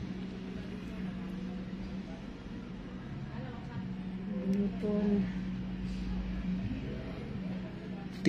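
Nail nippers click as they snip a toenail.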